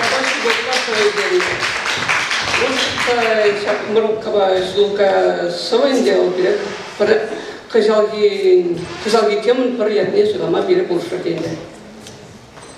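A young man reads out into a microphone through a loudspeaker.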